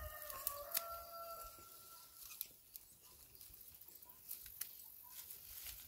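Dry stalks rustle and snap.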